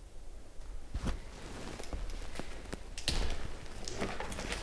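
Clothing rustles against a microphone.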